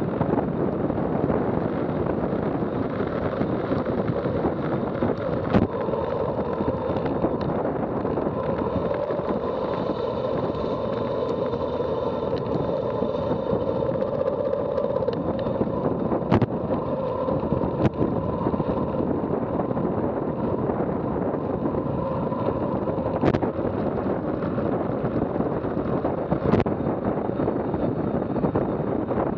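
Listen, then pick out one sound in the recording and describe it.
Wind roars loudly past a fast-moving bicycle outdoors.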